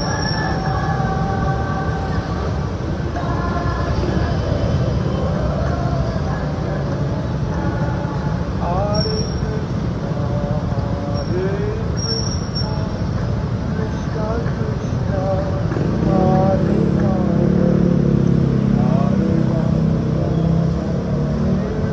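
Car engines idle and rev nearby.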